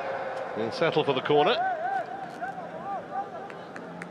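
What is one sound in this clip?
A football is kicked hard.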